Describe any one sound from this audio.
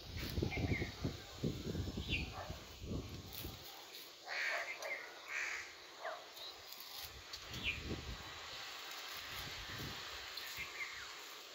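Plant stems rustle softly under a hand.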